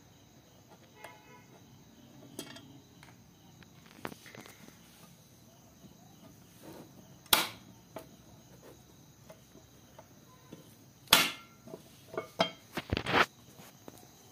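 Metal parts clank and click.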